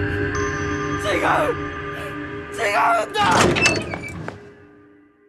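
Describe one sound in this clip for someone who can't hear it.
A young man speaks in a strained, emotional voice.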